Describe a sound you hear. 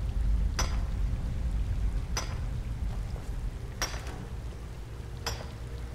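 A pickaxe strikes rock at a steady pace, each blow ringing briefly.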